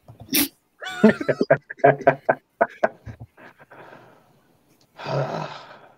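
A man laughs heartily over an online call.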